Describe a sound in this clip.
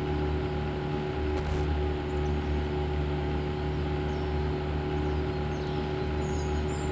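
A small boat's motor drones steadily across open water.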